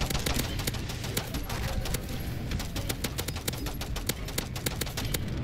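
Rapid gunfire crackles in a game.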